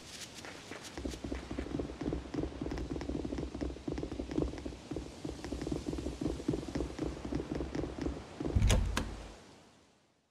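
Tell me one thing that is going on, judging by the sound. Running footsteps thump on hollow wooden boards.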